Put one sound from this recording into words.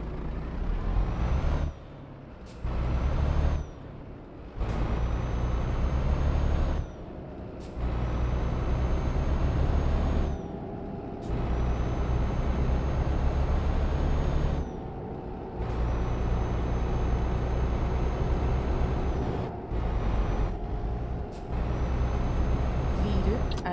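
A truck engine rumbles low and steady, surging and dropping as gears shift.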